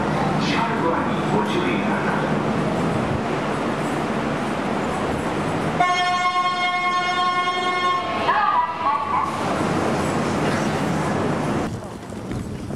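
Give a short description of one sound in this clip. An electric commuter train pulls into a station and rumbles to a stop.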